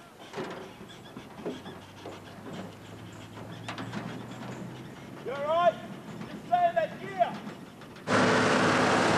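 A pickup truck's engine rumbles as it drives along a dirt road.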